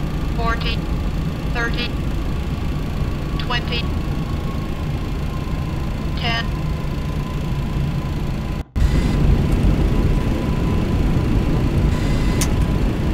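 Jet engines rumble steadily.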